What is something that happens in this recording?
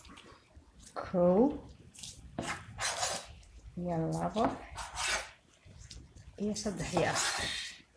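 A knife presses through soft dough and taps a wooden table.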